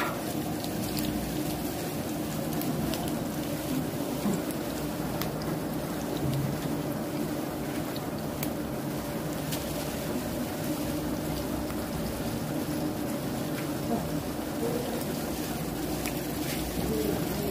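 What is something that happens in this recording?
A hand squelches through thick batter.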